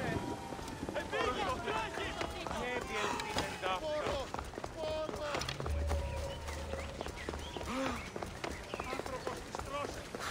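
Footsteps run quickly across stone paving.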